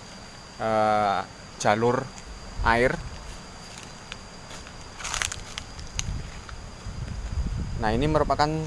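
A man speaks close by in short calls.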